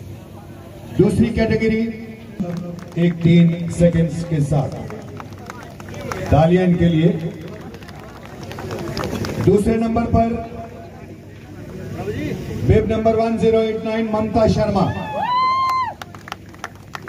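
A man announces loudly through a loudspeaker outdoors.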